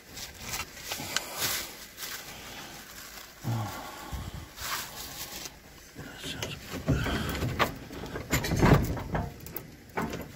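Plastic bags and food packaging rustle and crinkle as they are handled.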